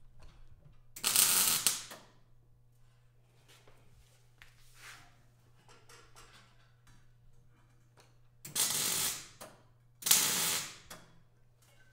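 A welding torch crackles and hisses in short bursts.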